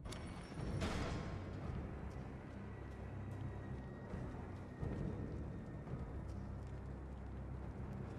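Footsteps move slowly across a stone floor.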